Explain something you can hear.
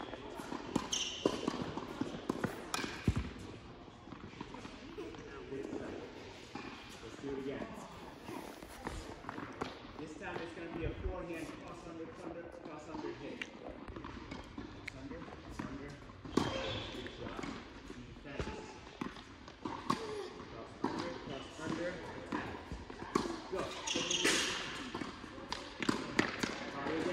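Tennis balls bounce on the court.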